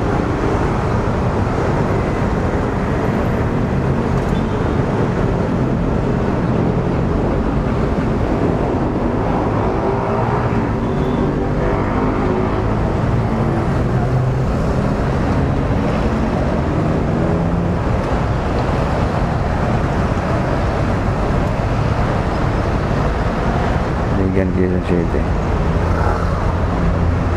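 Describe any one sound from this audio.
A motorcycle engine idles and rumbles close by.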